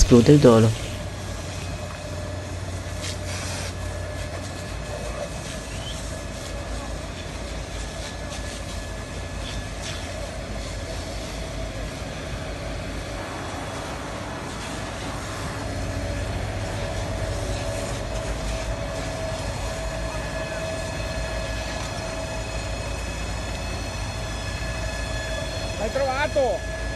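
Flames roar and crackle as buses burn outdoors.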